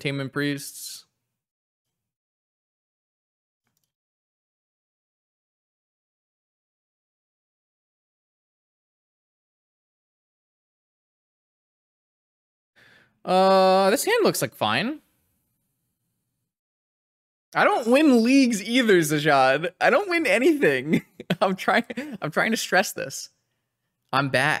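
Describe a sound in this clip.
A young man talks with animation into a close microphone, with pauses.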